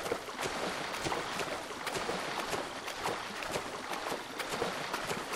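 Water splashes and sloshes steadily.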